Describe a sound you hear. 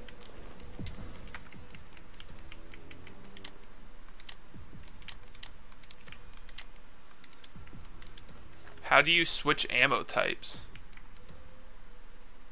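Game menu clicks tick quickly.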